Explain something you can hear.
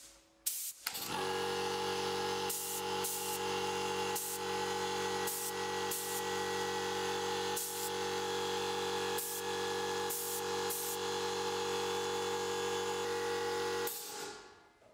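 An air compressor hums steadily nearby.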